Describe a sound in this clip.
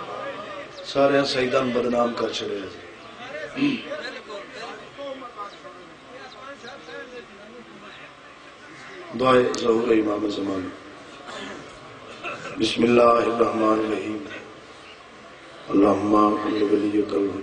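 A young man recites loudly and with feeling into a microphone, in bursts with pauses between.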